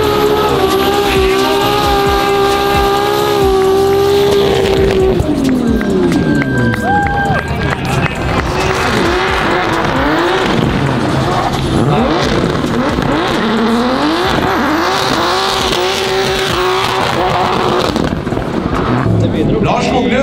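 A car engine revs hard and roars, rising and falling.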